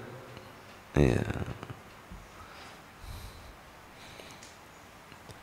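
A man laughs softly into a microphone.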